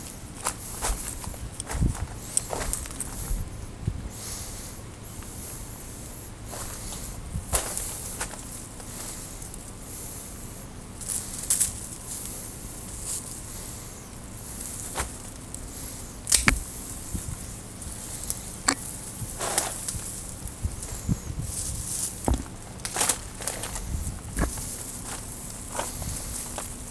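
Leafy branches rustle and brush against each other.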